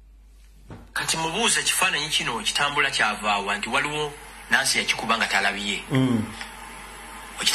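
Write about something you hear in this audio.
Men talk through a loudspeaker on a broadcast.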